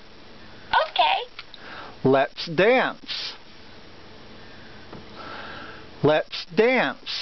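A toy parrot squawks and chatters in a shrill, electronic voice, in short bursts.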